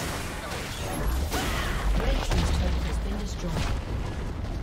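A tower crumbles with a deep rumbling crash.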